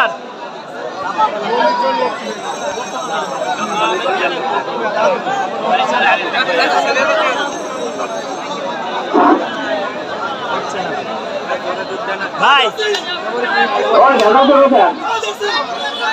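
Men call out loudly close by.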